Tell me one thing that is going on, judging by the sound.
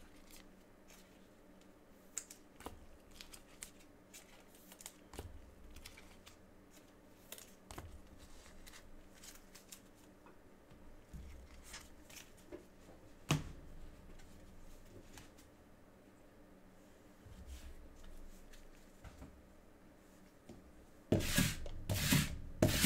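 Small clicks and taps sound from cards being handled.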